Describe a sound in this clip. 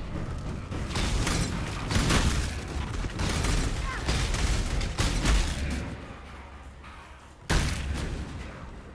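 Fiery spells burst and crackle in rapid bursts.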